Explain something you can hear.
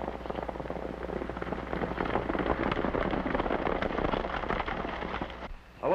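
Water rushes and splashes.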